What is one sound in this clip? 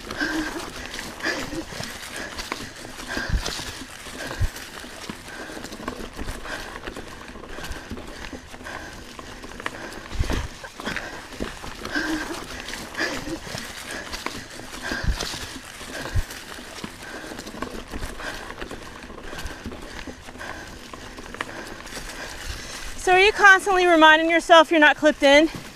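A bicycle rattles and thumps over bumps and roots.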